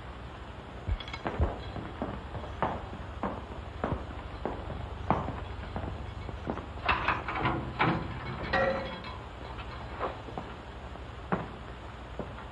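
Footsteps clack on a hard floor in an echoing hall.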